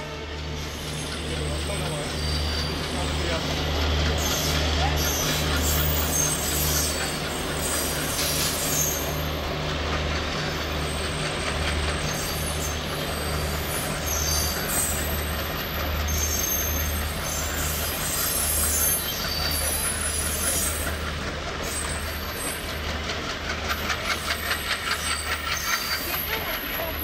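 A train of passenger coaches rolls along the tracks, wheels clacking rhythmically over rail joints.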